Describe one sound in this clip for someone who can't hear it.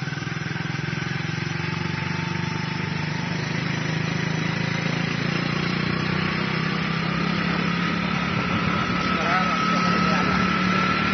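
A vehicle engine hums steadily and slowly rises in pitch.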